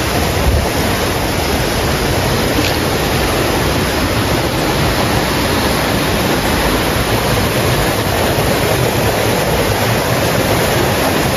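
A stream rushes and gurgles over rocks nearby.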